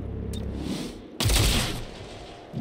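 A rifle fires a loud burst of shots.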